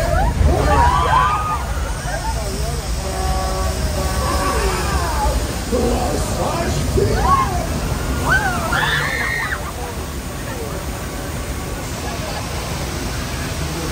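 Water crashes and splashes against a vehicle.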